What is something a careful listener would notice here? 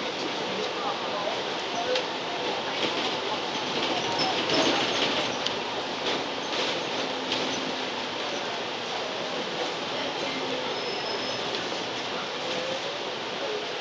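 Tyres roll and hiss on the road.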